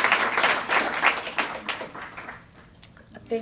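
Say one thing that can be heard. An audience claps and applauds loudly.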